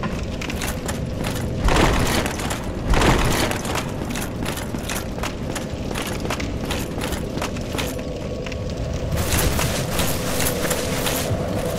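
Armoured footsteps walk on stone.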